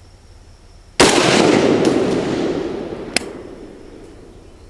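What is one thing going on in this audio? A rifle fires a single loud shot that echoes through the woods.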